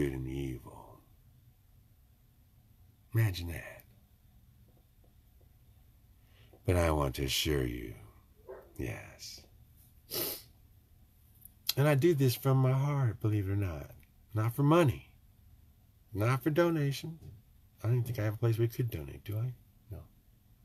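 An older man talks with animation close to a microphone, with pauses.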